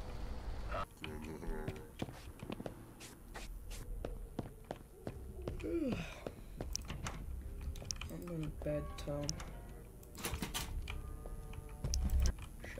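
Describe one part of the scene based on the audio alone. Footsteps tread steadily across a floor.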